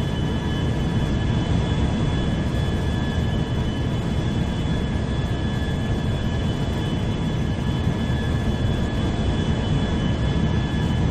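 A jet engine idles with a steady low roar.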